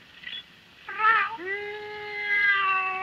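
A man imitates a cat's meow in a long, wavering wail.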